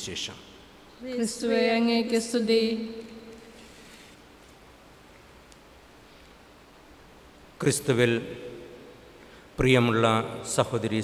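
A middle-aged man chants slowly and steadily through a microphone, with pauses between phrases, in an echoing hall.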